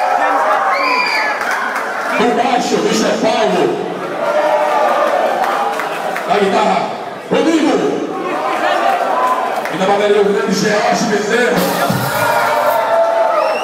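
A band plays loud live music with electric guitars and drums.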